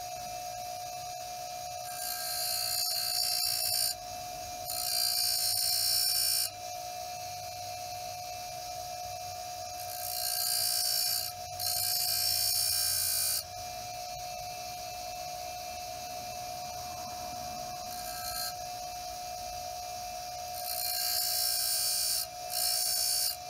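A bench grinder hums steadily.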